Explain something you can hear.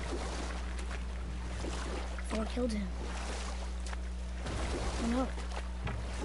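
Oars splash and dip into water.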